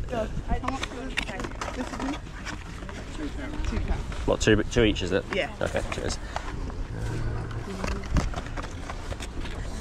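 A cardboard box rustles and crinkles as it is handled up close.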